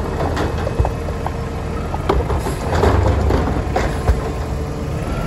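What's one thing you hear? A bin thuds down onto the curb.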